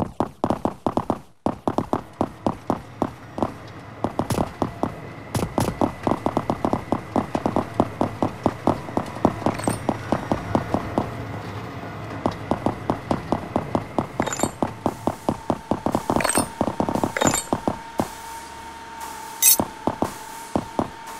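Footsteps tread quickly and steadily on stone paving.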